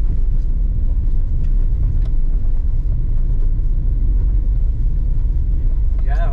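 A car rumbles steadily along a bumpy dirt road.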